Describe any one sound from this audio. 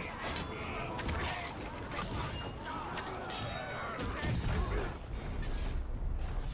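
Weapons clash and strike in a fierce fight.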